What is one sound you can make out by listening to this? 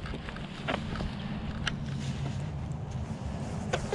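Boots stamp and crunch on dry ground.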